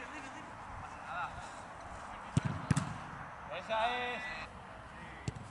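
Young men shout in the distance outdoors.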